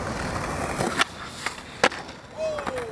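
A skateboard lands with a sharp clack.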